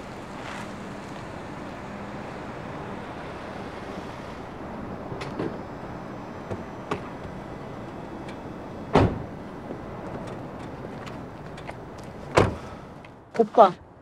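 A car engine idles softly.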